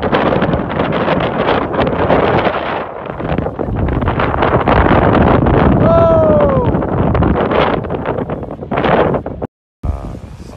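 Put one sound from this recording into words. Strong wind roars outdoors.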